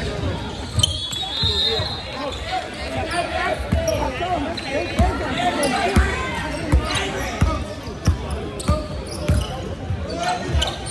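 A crowd of young people chatter and call out in a large echoing hall.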